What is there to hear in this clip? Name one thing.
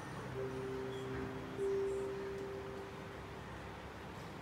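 A keyboard plays a long held note that slowly fades.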